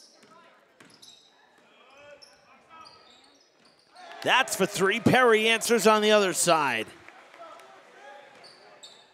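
Sneakers squeak sharply on a hard floor in an echoing gym.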